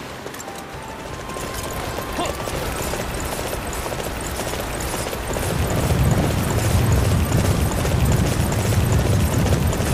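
Hooves pound steadily as a horse gallops.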